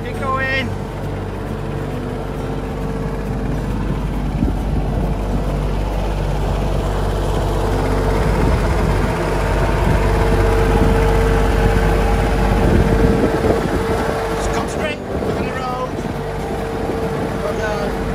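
A small tractor's diesel engine runs steadily close by.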